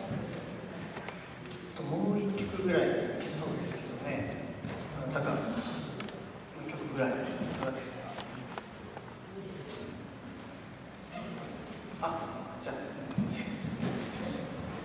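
A man speaks calmly into a microphone, heard over loudspeakers in a large echoing hall.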